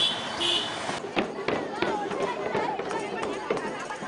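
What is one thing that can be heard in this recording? A crowd of girls and young women chatter excitedly close by.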